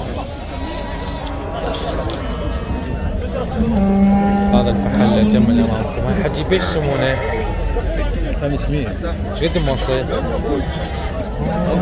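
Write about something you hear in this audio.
Sheep bleat loudly at close range.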